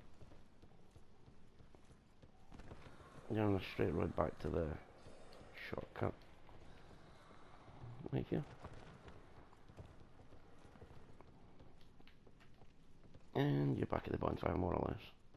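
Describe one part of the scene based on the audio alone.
Armoured footsteps run quickly over stone.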